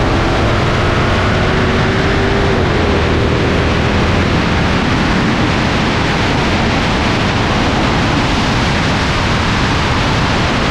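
Wind and road noise rush steadily past a moving car.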